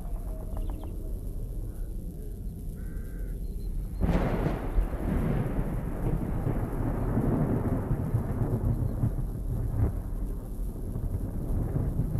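Wind gusts through trees outdoors.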